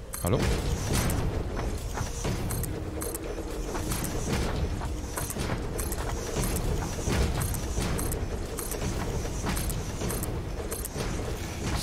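Building blocks snap into place with short knocks.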